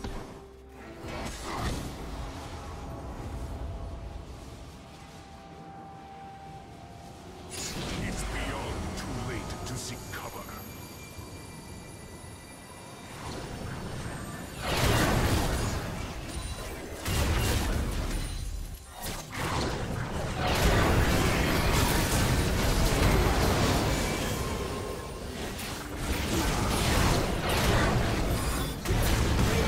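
Spell effects crackle and whoosh in a fierce fight.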